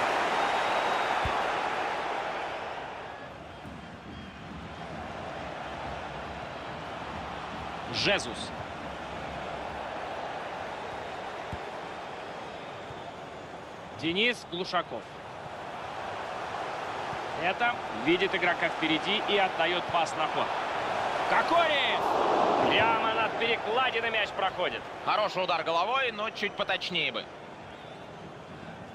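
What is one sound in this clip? A large stadium crowd roars steadily and swells loudly after a goal.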